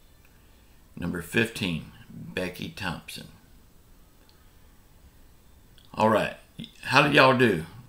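A middle-aged man speaks calmly and closely into a microphone, pausing between phrases.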